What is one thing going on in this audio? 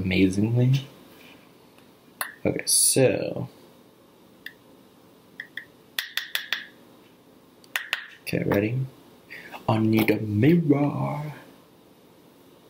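A young man speaks casually, close by, in bursts.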